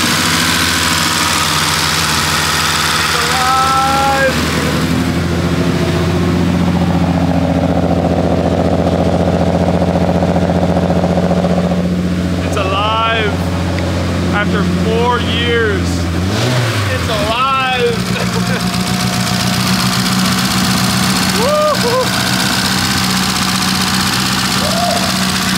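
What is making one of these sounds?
A car engine idles steadily and close by.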